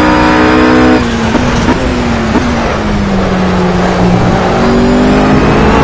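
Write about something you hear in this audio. A GT3 race car engine drops in pitch while braking and shifting down.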